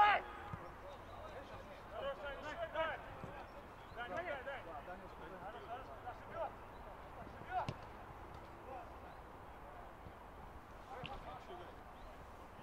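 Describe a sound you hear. Young men shout to each other across an outdoor pitch.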